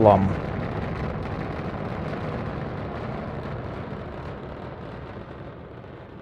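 A rocket engine roars steadily and slowly fades into the distance.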